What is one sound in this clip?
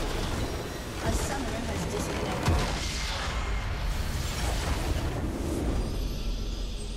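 A large game structure explodes with a deep boom.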